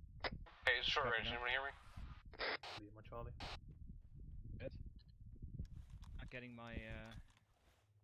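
Footsteps shuffle on dry, gravelly ground.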